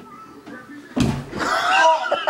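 A body thumps down onto a bed.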